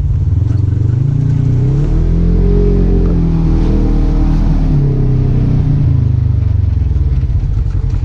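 Tyres crunch over a rough dirt trail.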